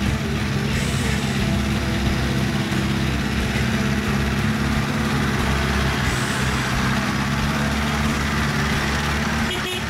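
An off-road vehicle's engine rumbles and labours close by.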